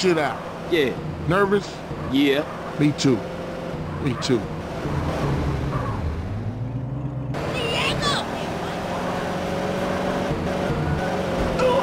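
A car engine roars steadily as the car drives.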